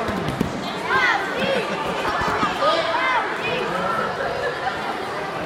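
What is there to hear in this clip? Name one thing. A crowd of children cheers and shouts in a large echoing hall.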